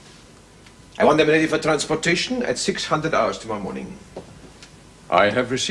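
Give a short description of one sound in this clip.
An older man speaks sternly close by.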